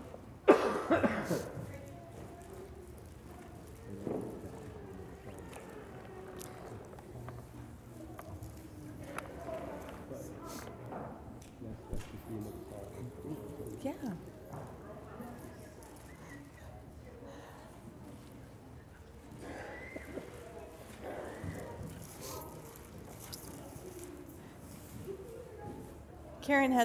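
Children play and call out in a large echoing hall.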